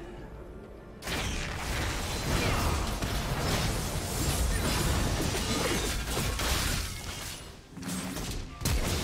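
Spell effects burst and crackle in a busy game fight.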